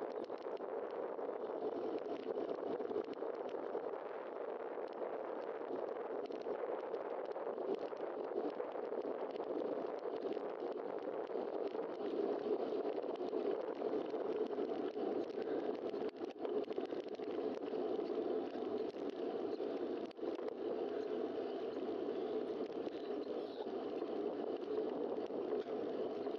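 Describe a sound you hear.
Wind rushes steadily over a microphone outdoors.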